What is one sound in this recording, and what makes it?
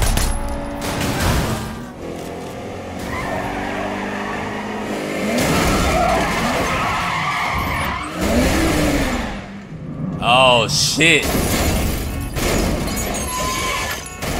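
Metal crunches as a car crashes.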